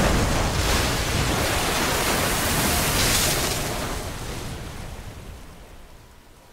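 Water rushes loudly through an echoing tunnel and fades away.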